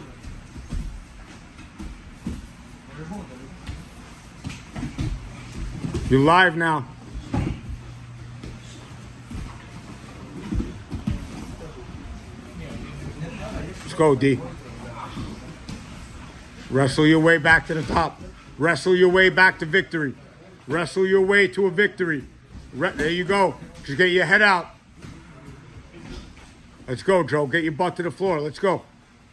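Bodies thud and shuffle on a padded mat.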